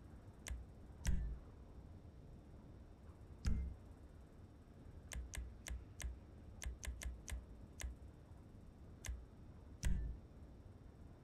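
Soft thuds confirm menu choices now and then.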